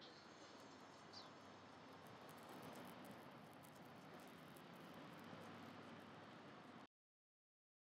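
Footsteps tap on paving outdoors.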